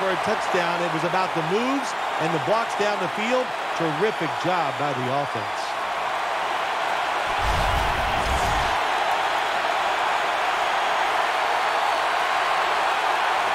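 A stadium crowd cheers and roars steadily.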